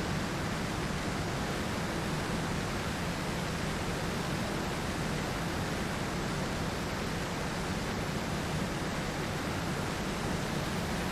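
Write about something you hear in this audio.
A jet engine roars steadily as a plane takes off and flies.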